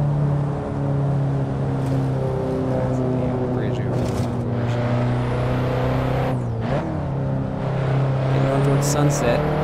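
A car engine hums steadily at high revs, dipping briefly as gears change.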